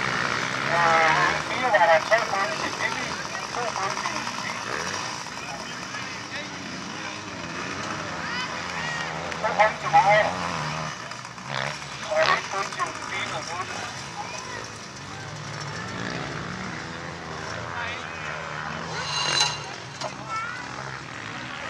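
A motorbike engine drones and revs on a dirt track.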